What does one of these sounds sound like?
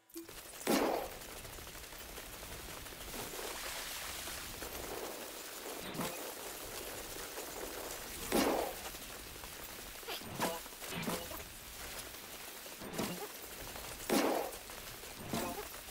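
Footsteps rush through tall grass with a rustling swish.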